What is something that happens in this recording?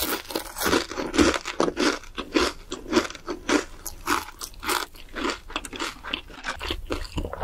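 A young woman chews food noisily and close to the microphone.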